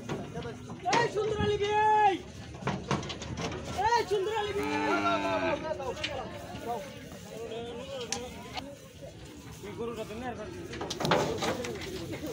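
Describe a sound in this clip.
Hooves thud and scrape on a wooden ramp as a bull jumps down from a truck.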